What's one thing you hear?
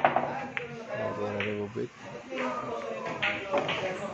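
Billiard balls crack and scatter on a break shot.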